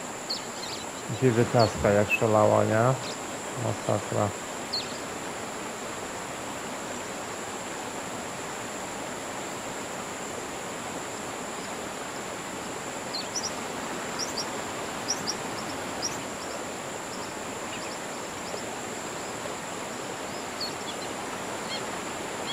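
Water laps softly at a lakeshore.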